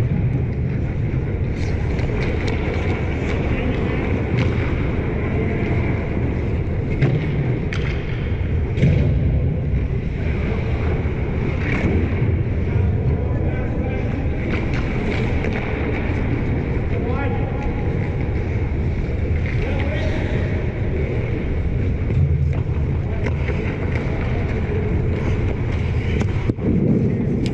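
Skate blades scrape and hiss across the ice in a large echoing arena.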